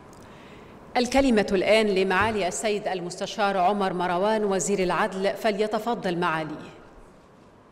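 A young woman speaks clearly through a microphone.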